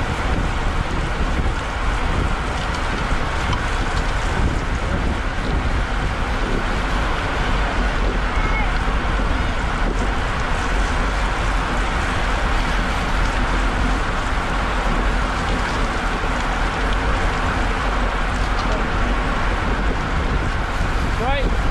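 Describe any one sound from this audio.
Bicycle tyres hiss on a wet road.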